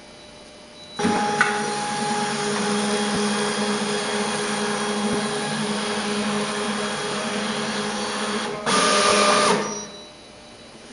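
A thermal label printer whirs as its motor feeds labels through.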